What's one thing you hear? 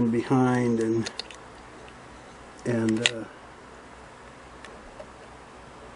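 A small metal tool clicks against a machine part.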